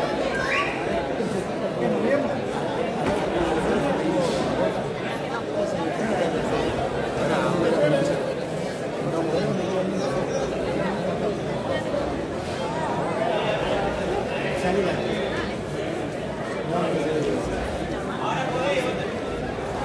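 A large crowd chatters and calls out in an echoing hall.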